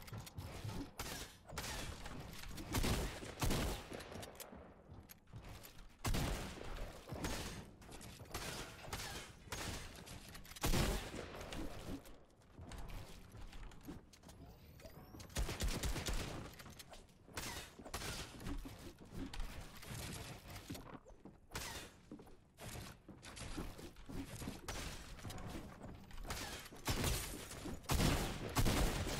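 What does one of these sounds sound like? Wooden walls and ramps snap into place in quick bursts.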